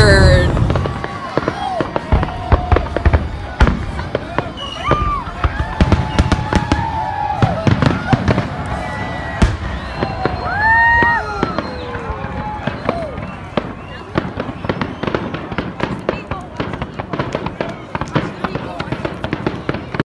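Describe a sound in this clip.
Fireworks crackle and sizzle.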